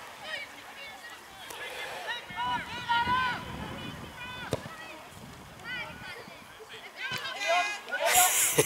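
Children shout and call out excitedly across an open field.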